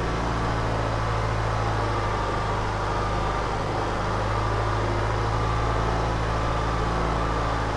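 Feed blows out of a spreader with a steady hiss.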